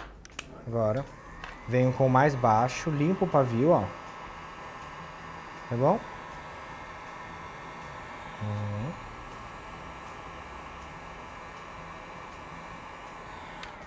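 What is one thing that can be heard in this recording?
A heat gun blows with a steady whooshing hum.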